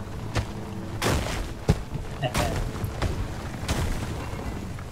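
Rocks crumble and crash in bursts as a pickaxe breaks them.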